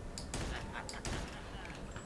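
A submachine gun fires a burst of shots.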